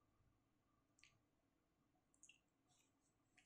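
A plastic ruler slides softly across paper.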